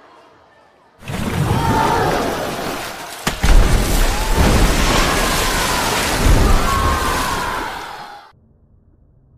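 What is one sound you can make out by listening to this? A large crowd of children screams and cheers in an echoing hall.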